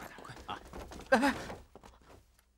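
A young man speaks briefly and nervously.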